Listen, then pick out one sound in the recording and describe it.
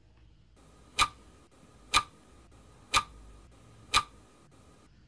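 A countdown timer ticks once each second.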